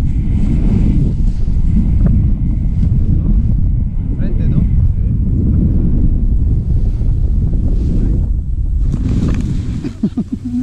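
Wind rushes and buffets the microphone during a paraglider flight.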